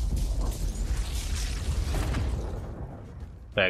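An energy beam crackles and roars.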